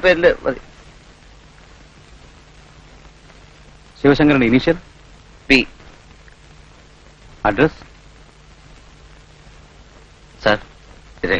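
A man speaks in short, tense phrases, close by.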